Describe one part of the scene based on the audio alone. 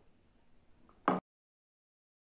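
A glass is set down on a table with a light knock.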